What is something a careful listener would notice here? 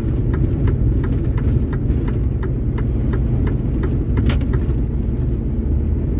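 A truck rushes past in the opposite direction.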